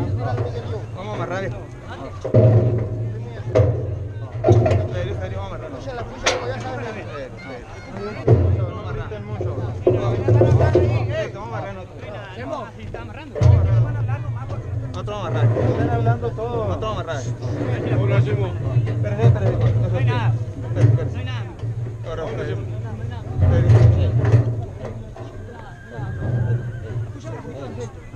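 Several men talk and call out close by, outdoors.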